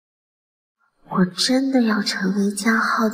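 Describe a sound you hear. A young woman speaks softly nearby.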